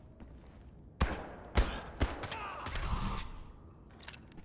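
A pistol fires several sharp shots close by.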